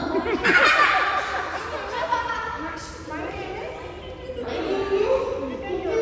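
Children laugh.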